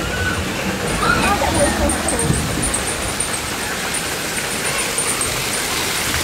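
A small waterfall splashes onto rocks.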